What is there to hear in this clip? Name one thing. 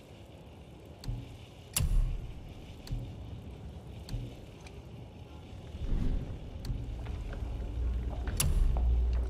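Short soft clicks and chimes sound as menu choices change.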